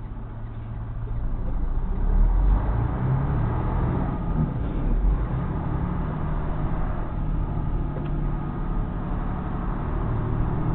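A heavy truck's diesel engine pulls away from a stop and works harder as it speeds up.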